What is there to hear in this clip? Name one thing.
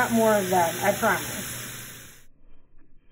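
Mushrooms sizzle in a hot pan.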